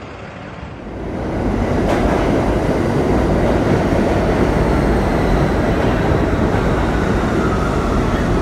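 A subway train roars loudly past.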